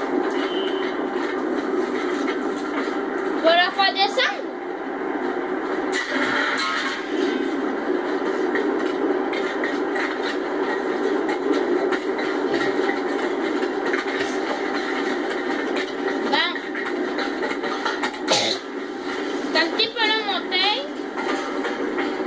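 A low, steady drone of machinery hums throughout.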